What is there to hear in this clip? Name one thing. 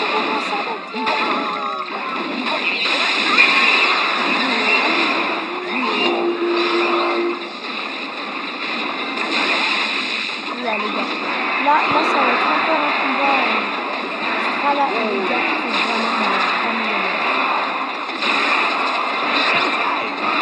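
Game battle sounds clash, crackle and zap throughout.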